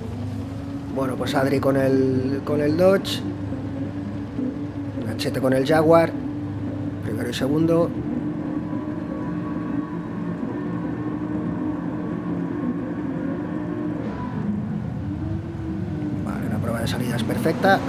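Racing car engines rev up sharply in short bursts.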